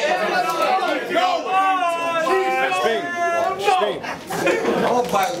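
A man raps forcefully into a microphone, close by.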